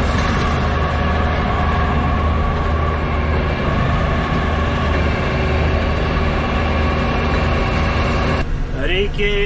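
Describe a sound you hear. A diesel engine hums steadily nearby.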